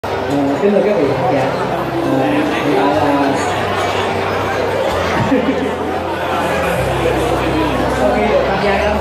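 A man sings into a microphone over loudspeakers.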